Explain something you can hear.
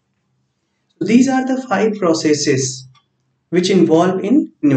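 A man speaks calmly and clearly to listeners, close to a microphone.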